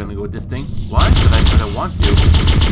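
Energy weapon bolts zap and whine in quick bursts.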